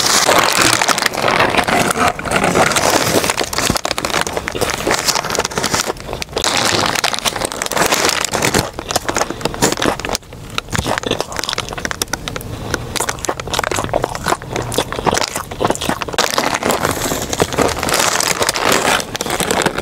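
A young woman chews noisily with her mouth full, close to a microphone.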